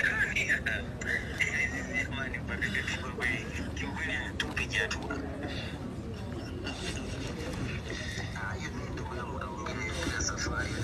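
A young man speaks into close microphones.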